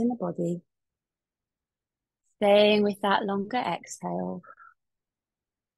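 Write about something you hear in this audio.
A young woman speaks calmly and clearly into a close microphone, with pauses.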